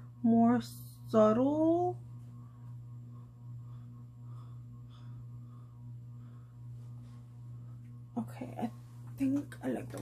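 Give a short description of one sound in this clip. A makeup brush sweeps softly across skin.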